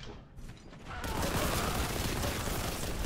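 A gun fires rapidly.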